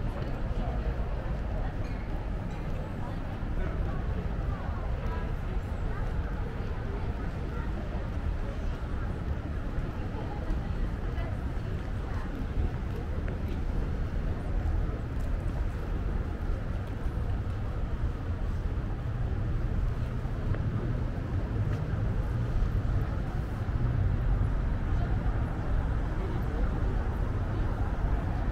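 Car engines hum nearby on a city street.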